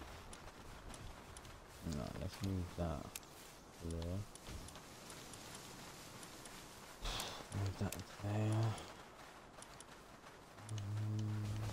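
Soft clicks sound as items are moved between menus.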